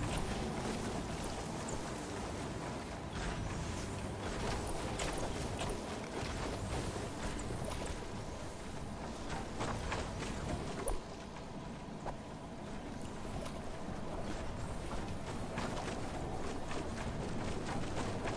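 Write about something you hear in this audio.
Footsteps patter quickly over grass and wooden planks.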